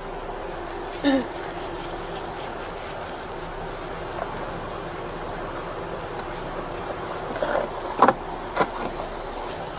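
Plastic storage bins knock and rattle.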